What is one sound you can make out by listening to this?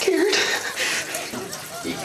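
A young man cries and sobs.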